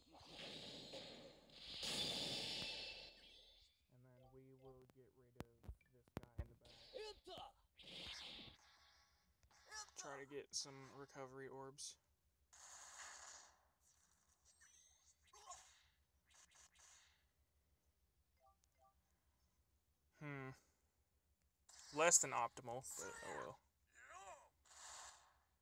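Video game sound effects of punches and blasts burst out in quick succession.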